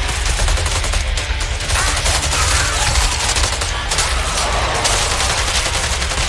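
Several guns fire in a loud battle.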